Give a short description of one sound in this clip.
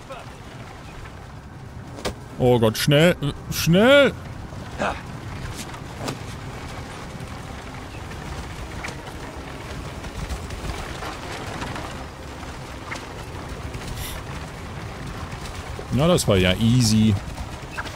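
A wooden cart rumbles and creaks over sand.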